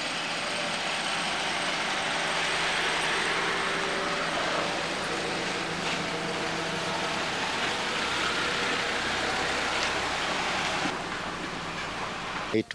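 A car rolls slowly over a dirt road.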